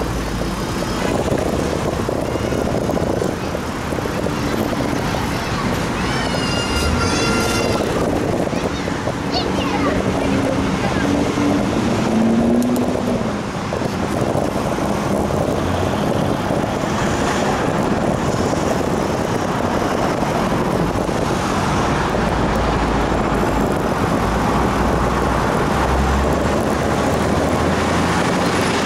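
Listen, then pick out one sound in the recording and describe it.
Wind rushes steadily and loudly past.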